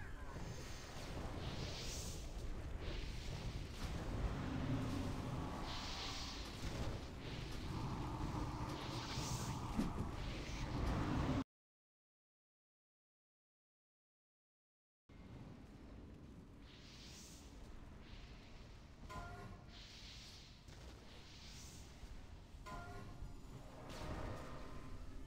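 Magic spells whoosh and crackle in a video game battle.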